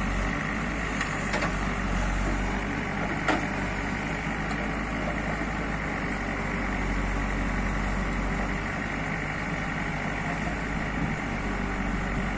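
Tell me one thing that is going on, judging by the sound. A metal bucket scrapes and digs into soil.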